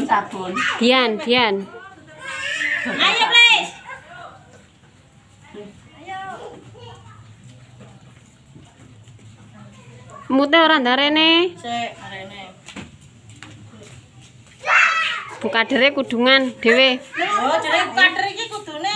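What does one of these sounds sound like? Women talk with animation nearby.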